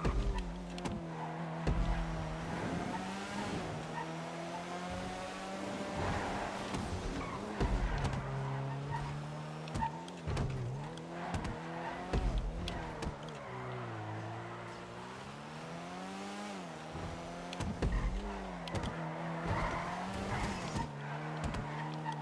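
A car engine roars, revving up and down as gears shift.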